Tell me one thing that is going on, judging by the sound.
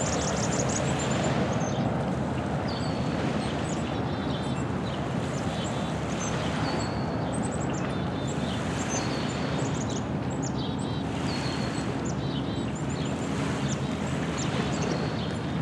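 Small waves lap gently against a pebbly shore.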